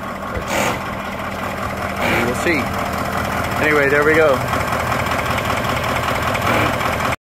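A diesel engine idles steadily close by.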